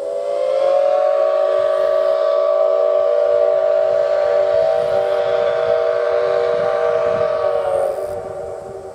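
A steam locomotive whistle blows a long, steady chord and then fades away with an echo.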